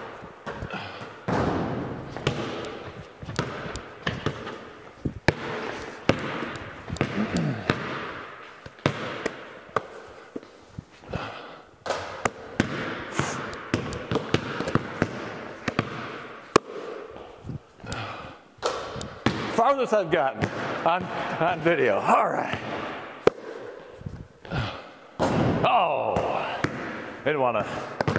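Basketballs bounce on a hard floor in a large echoing hall.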